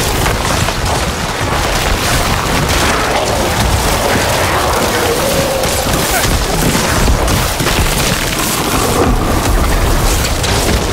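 Magic spells crackle and burst in a dense, noisy battle.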